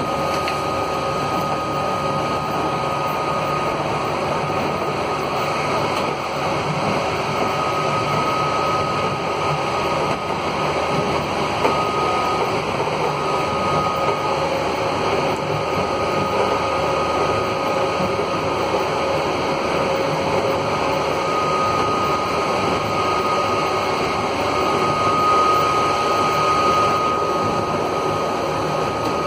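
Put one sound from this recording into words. An electric minibus whines and rumbles as it drives, heard from inside.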